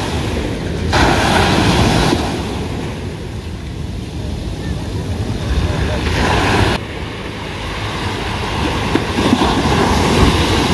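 Waves break and rush onto a beach.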